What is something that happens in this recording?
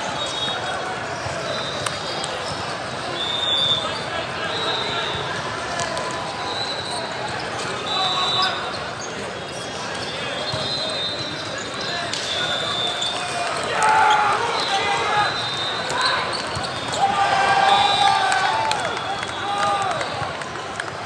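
A crowd of players and spectators chatter and shout in a large echoing hall.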